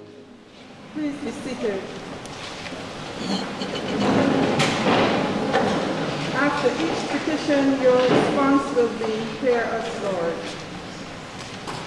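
A woman reads aloud steadily through a microphone in an echoing room.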